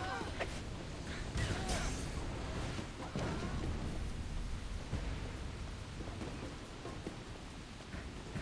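A blade swishes and strikes in a fight.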